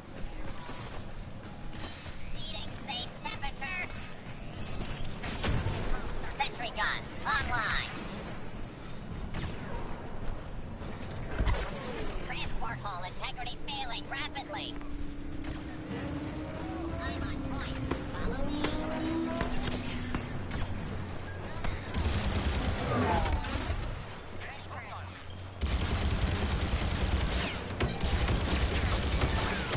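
Distant explosions and gunfire rumble in a battle.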